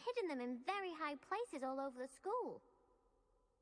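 A young girl speaks with animation.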